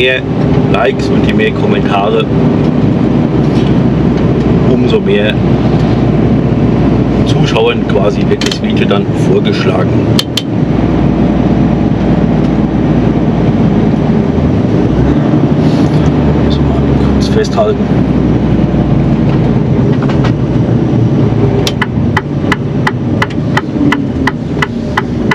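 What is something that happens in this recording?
A truck engine hums steadily and low inside the cab.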